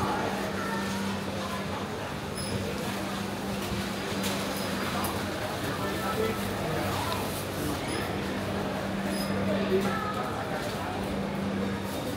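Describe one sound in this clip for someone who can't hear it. Footsteps shuffle on a hard floor among a crowd.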